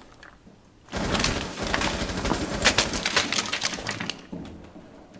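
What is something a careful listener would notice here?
Rapid gunshots crack loudly nearby, hitting a wall.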